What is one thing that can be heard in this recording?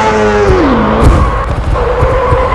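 A motorcycle crashes with a sudden thud.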